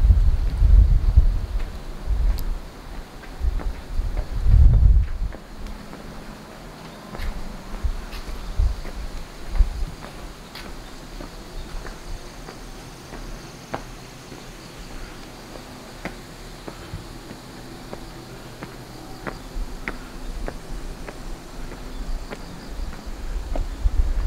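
Footsteps scuff slowly on a paved road.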